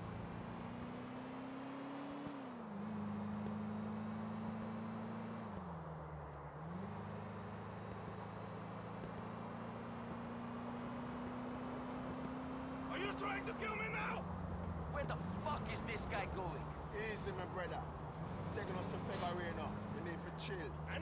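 A car engine hums steadily, rising and falling in pitch as the car speeds up and slows down.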